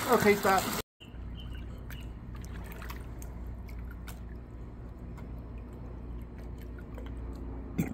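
Water laps and drips softly around a floating swimmer.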